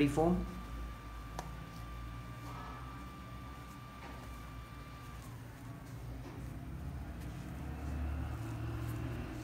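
Hands turn and handle a mesh sneaker with soft rustling.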